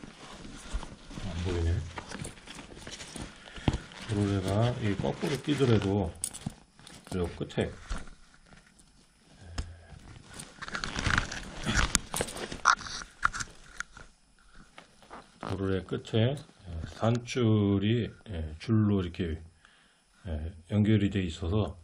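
Nylon straps and fabric rustle as hands handle a backpack.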